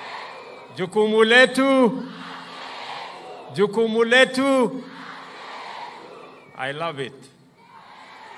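A large crowd cheers in the distance.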